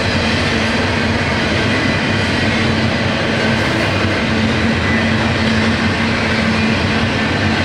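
A long freight train rumbles steadily past at a distance.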